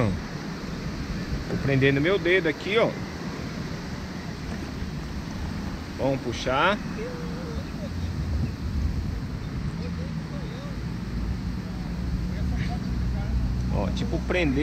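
A kayak paddle dips and splashes in calm water.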